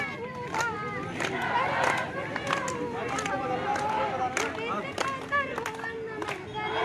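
A crowd of men chants loudly outdoors.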